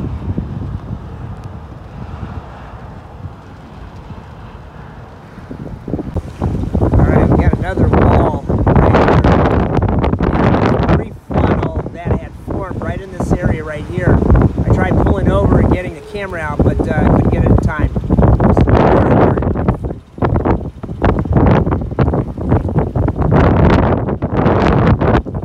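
Wind blows in strong gusts outdoors.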